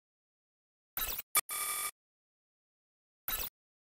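Menu selection sounds blip and click in short bursts.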